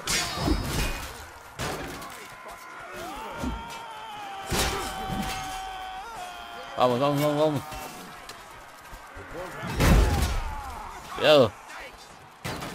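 Swords clash and ring with metal blows.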